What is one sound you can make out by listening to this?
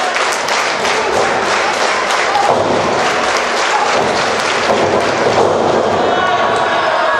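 A large crowd chatters and calls out loudly in an echoing hall.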